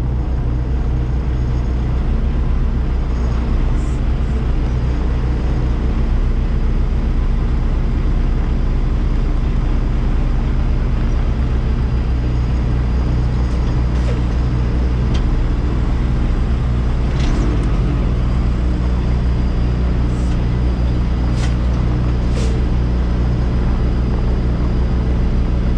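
A truck's diesel engine idles with a steady low rumble.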